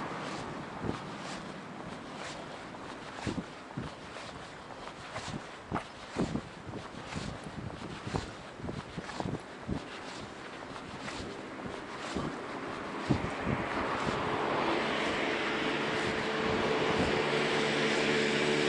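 Wind rushes past the microphone outdoors.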